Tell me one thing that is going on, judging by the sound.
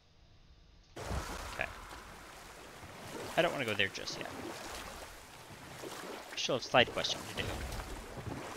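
Oars splash and row through water.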